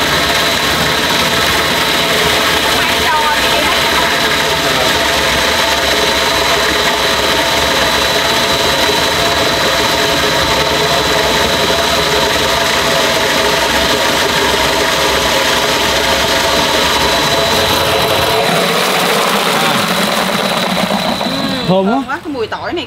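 A machine whirs loudly and steadily, then stops.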